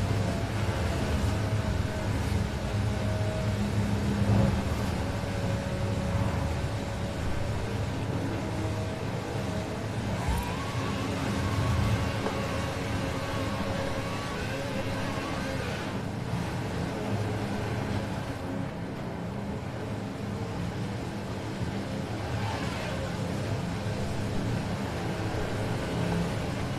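A sports car engine roars steadily, rising and falling as it speeds up and slows.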